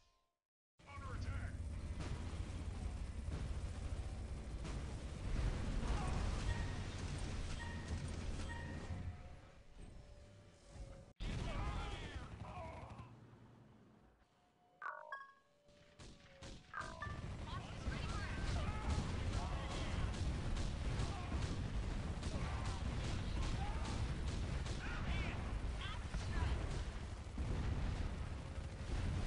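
Explosions boom now and then.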